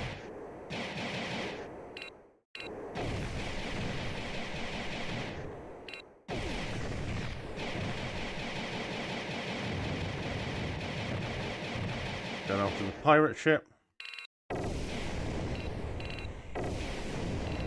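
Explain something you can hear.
Explosions and energy blasts burst from a video game.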